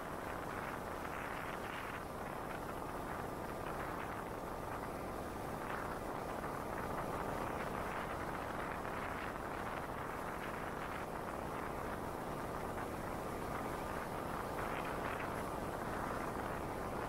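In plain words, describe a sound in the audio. A car's engine hums steadily as it drives.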